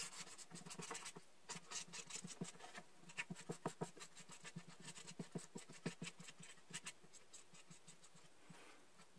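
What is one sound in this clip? A plastic tool clicks and scrapes rapidly against a hard plastic piece.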